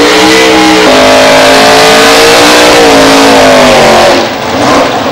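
A drag racing car's engine revs hard during a burnout.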